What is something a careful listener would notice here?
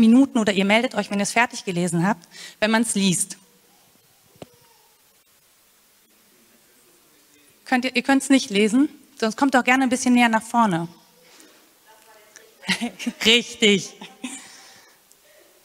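A woman speaks calmly into a microphone over loudspeakers in a large echoing hall.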